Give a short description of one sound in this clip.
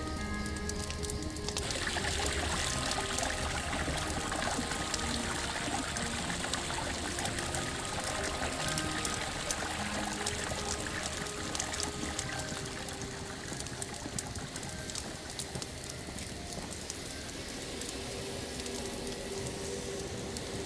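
Footsteps fall on stone as a figure walks.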